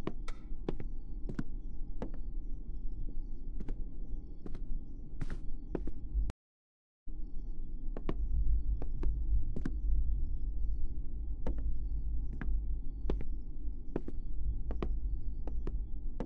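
Footsteps thud slowly and steadily on wooden floorboards.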